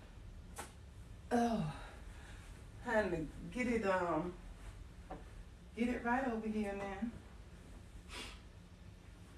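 Pillows are plumped and set down with soft thumps.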